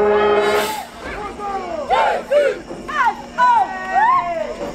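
Brass horns slide up and down in short swooping notes.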